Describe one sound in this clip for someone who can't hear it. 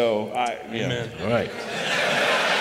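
A middle-aged man speaks through a microphone.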